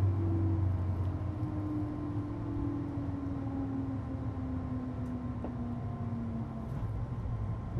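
An electric train's motor whines and slowly falls in pitch.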